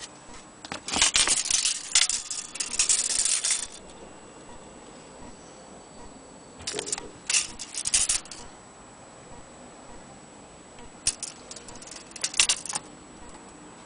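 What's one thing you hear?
A metal tape measure rattles and clicks as it is pulled out and moved around.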